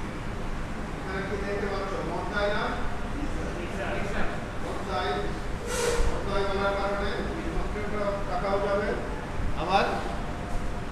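A man speaks calmly, slightly muffled, in a room with some echo.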